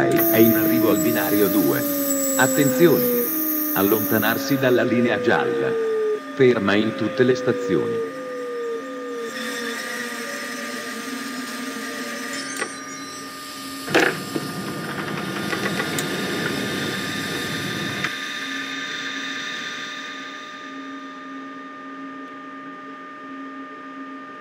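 An electric train hums steadily as it rolls slowly along the track.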